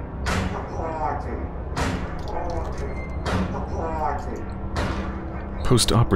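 An old wooden door creaks open.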